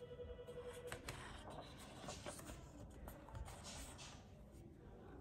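Paper pages rustle as a book page is turned.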